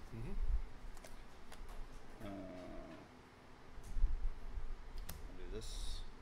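Plastic game chips click on a wooden table.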